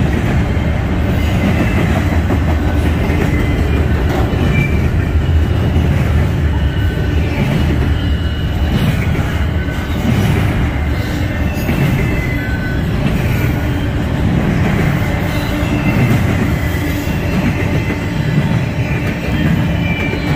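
A long freight train rumbles past on the rails close by.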